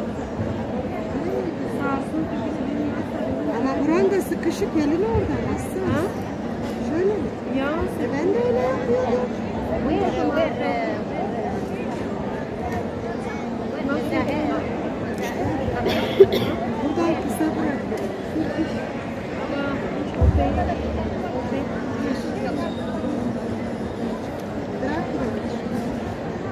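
A crowd of women murmur and recite softly all around.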